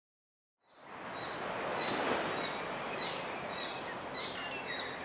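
Small waves lap gently against the shore.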